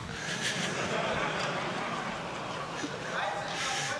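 A man laughs softly nearby.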